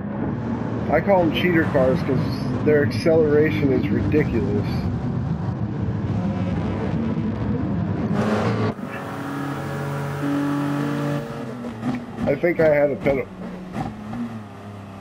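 Racing prototype cars roar by at full throttle.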